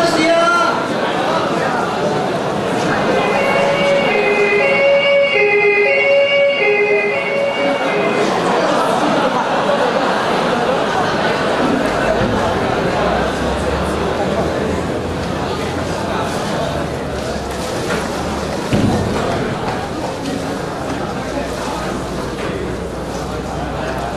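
A large audience murmurs and chatters in an echoing hall.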